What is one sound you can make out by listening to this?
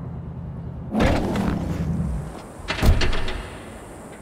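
A car door opens and slams shut.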